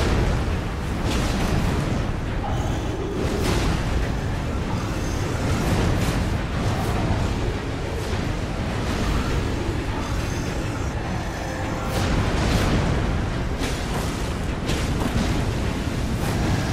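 A huge creature stomps heavily.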